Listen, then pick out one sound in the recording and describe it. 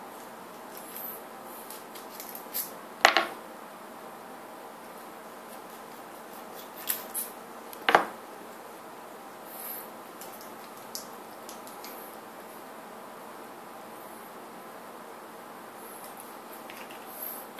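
Small plastic parts click and tap up close.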